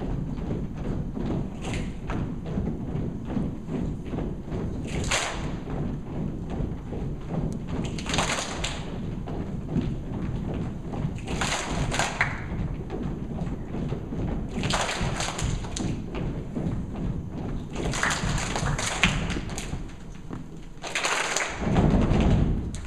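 A large children's choir sings together in an echoing hall.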